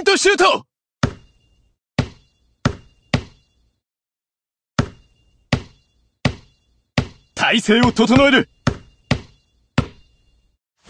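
A basketball bounces on a hard court in a steady dribble.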